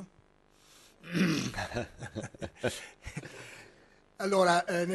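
Two men laugh.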